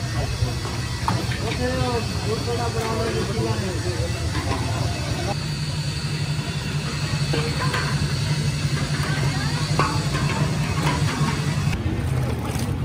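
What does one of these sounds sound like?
Metal bowls scrape and rattle as they are spun on a metal tray.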